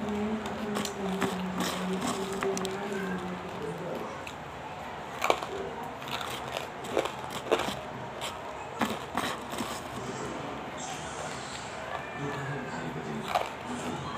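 Grains of crystals crunch and rattle as fingers stir them.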